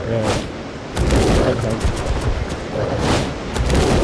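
A waterfall rushes and roars nearby.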